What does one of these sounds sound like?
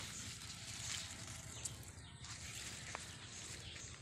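Leaves rustle as a hand brushes through a leafy plant close by.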